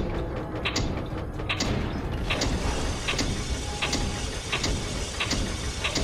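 A heavy metal crank turns with rhythmic clanking and grinding.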